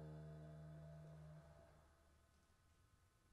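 A trombone holds a long note that fades away.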